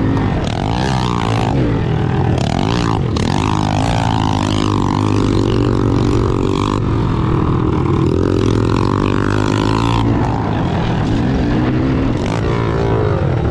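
A second dirt bike engine buzzes just ahead.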